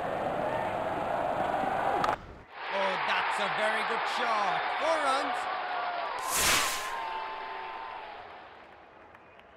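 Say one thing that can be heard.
A large stadium crowd cheers loudly and then fades.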